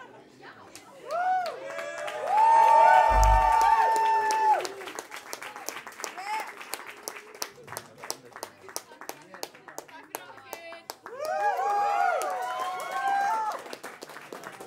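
A young woman sings loudly through a microphone.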